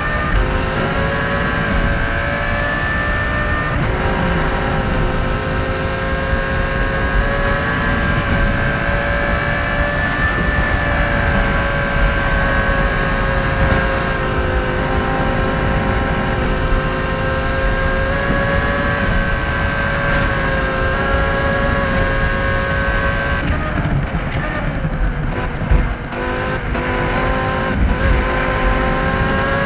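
A car engine roars steadily at high speed, its pitch dipping and rising again near the end.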